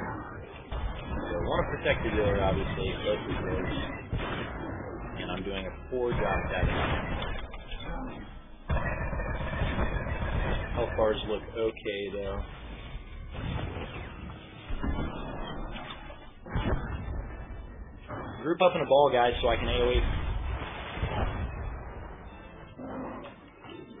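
Blaster shots and energy blasts crackle and thump in a fight.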